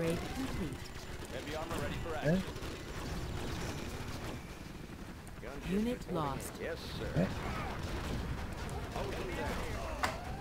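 Gunfire and explosions rumble in a battle.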